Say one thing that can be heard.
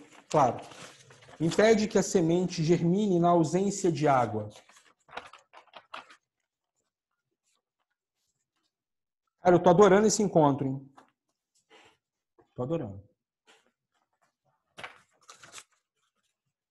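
Paper rustles as a man handles a sheet.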